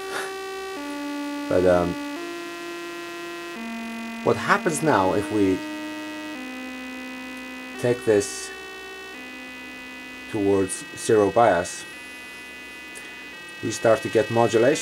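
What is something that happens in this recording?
A synthesizer plays a sequence of steady electronic tones that change pitch every second or two.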